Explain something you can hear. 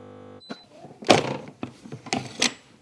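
A button on a machine clicks under a finger.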